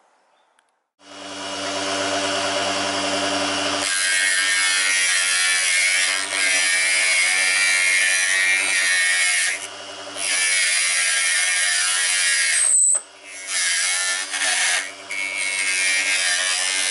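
A small lathe motor whirs steadily.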